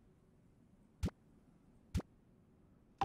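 A short game chime clicks as an item is placed.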